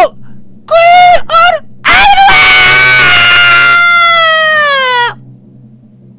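A young man shouts with animation close to a microphone.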